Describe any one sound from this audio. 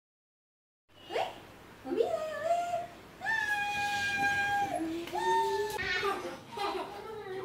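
A young woman calls out cheerfully.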